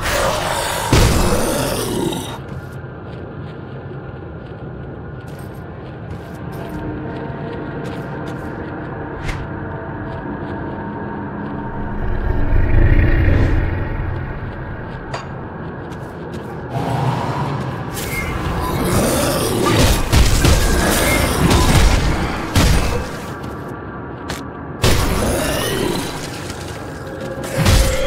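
Calm, low music plays steadily throughout.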